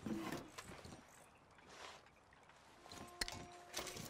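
A wooden drawer slides shut with a knock.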